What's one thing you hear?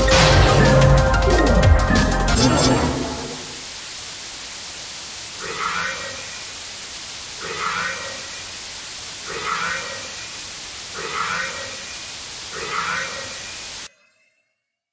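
Harsh glitchy electronic noise hisses and crackles, with a rhythmic whooshing pulse.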